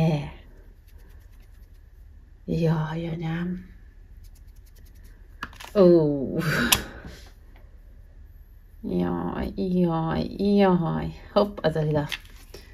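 Plastic makeup cases click and rustle as hands handle them.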